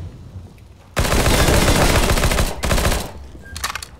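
Rapid gunfire rattles in a burst.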